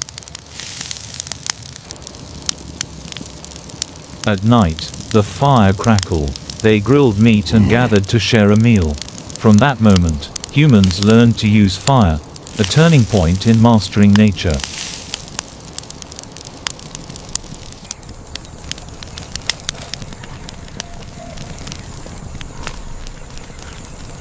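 A fire crackles and pops close by.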